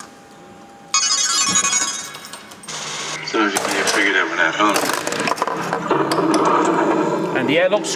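A pinball machine plays loud electronic sound effects and music.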